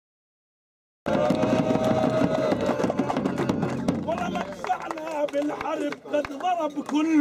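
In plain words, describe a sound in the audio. A crowd of men and women sings and cheers loudly.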